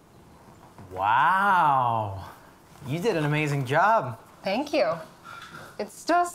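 A young woman speaks cheerfully nearby.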